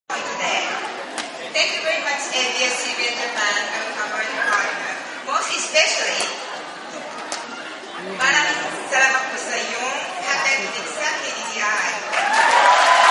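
A man speaks calmly through loudspeakers in a large echoing hall.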